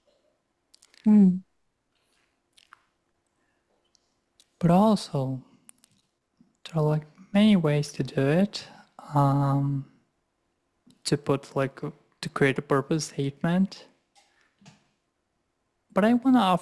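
A young man speaks calmly into a microphone over an online call.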